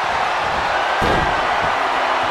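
A wrestler's body slams hard onto the ring mat.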